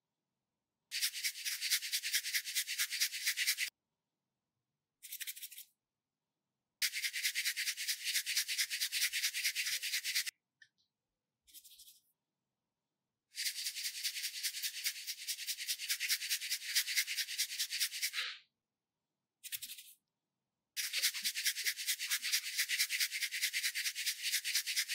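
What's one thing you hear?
Sand pours from a squeeze bottle in fast, rattling hisses.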